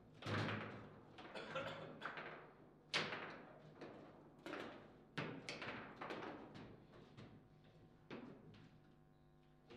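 A foosball ball bangs and clacks against plastic players and the table walls.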